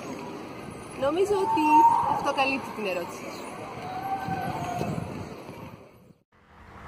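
A young woman speaks with animation close by, outdoors.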